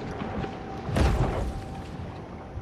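An electric zap crackles underwater.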